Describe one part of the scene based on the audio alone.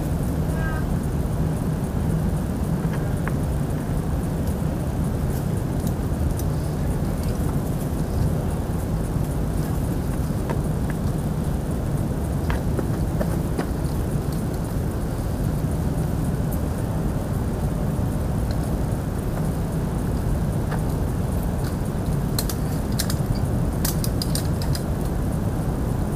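A climber's shoes scuff and scrape against rock.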